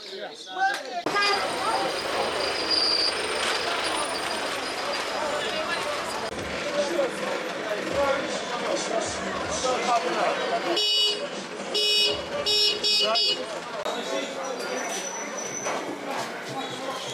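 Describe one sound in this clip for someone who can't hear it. A busy crowd of men and women chatters all around outdoors.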